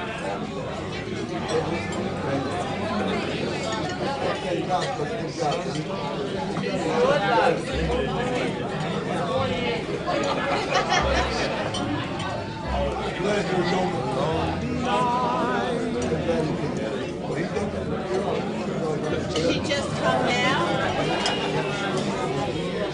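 A large crowd of elderly men and women chatters all around.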